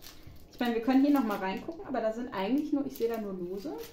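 A plastic packet crinkles.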